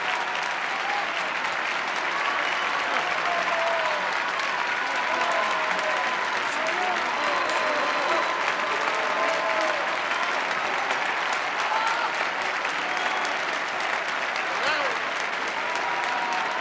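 A crowd cheers and calls out with voices.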